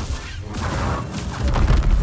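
Sparks crackle as a blade strikes.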